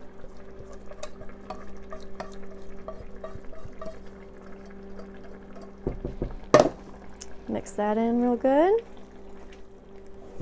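A spatula scrapes food from a pot into a bowl.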